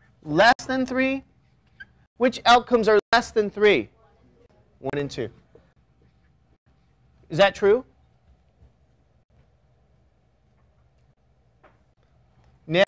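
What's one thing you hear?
A man lectures, speaking in short phrases.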